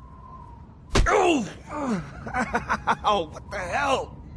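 A young man groans in pain close by.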